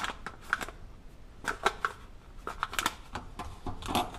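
Small seeds patter out onto a dish.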